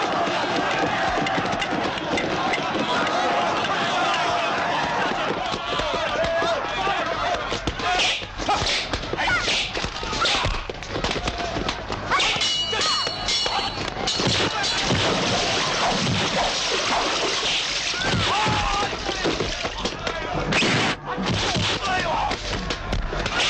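Blows and thuds land during a fistfight.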